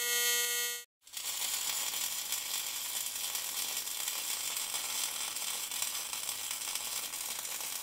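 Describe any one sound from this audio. A welding arc crackles and sizzles loudly.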